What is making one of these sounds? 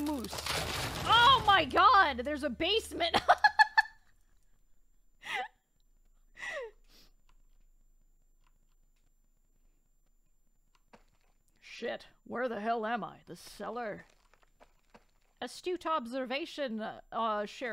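A young woman talks animatedly into a close microphone, with pauses.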